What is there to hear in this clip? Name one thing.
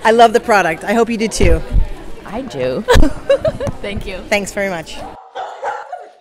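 A woman talks and laughs with animation, close by.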